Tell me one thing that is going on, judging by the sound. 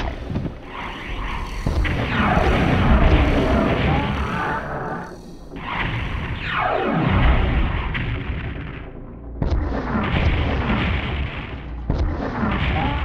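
Game rockets explode with loud booms.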